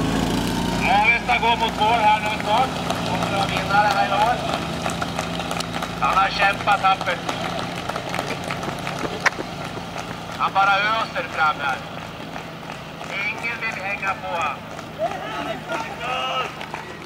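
Men and women in a crowd at the roadside cheer and call out loudly.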